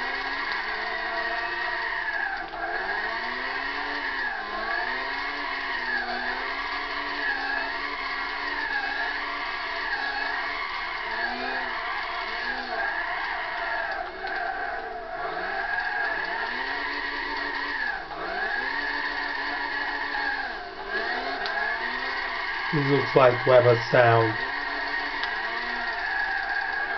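A race car engine roars, revving up and dropping with each gear change.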